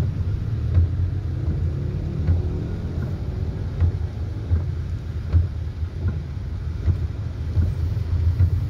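A motorbike engine rumbles steadily close by.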